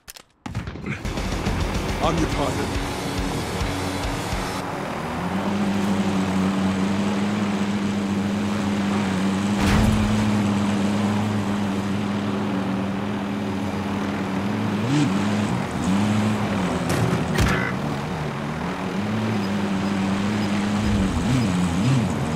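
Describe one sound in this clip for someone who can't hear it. A helicopter's engine whines and its rotor thumps steadily close by.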